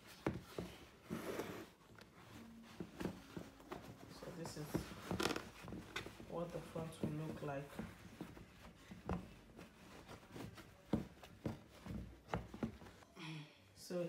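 Fabric rustles and scrapes as hands smooth it close by.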